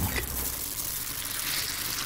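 Cereal pieces rattle as they pour into a bowl.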